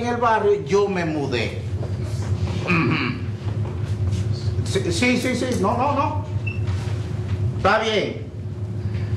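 A man speaks with animation into a phone, close to a microphone.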